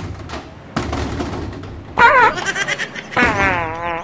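A hand taps on a glass door.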